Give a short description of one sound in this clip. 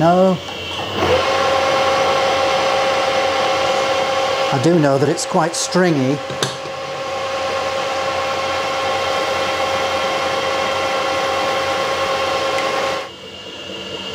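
A lathe motor whirs steadily.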